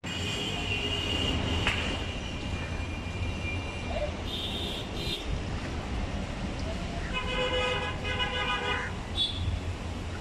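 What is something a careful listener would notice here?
Hands squelch and rub wet raw meat in a metal pot.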